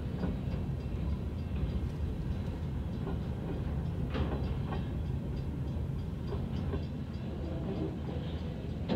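A railway crossing bell rings in steady repeated strokes.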